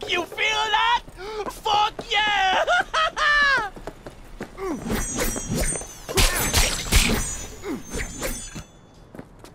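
A sword swishes and slashes in quick strikes.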